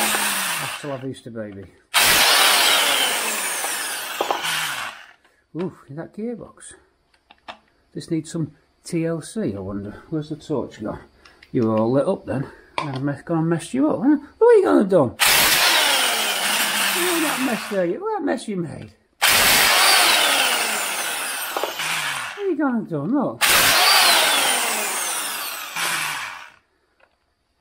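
An impact wrench whirs and rattles in loud bursts.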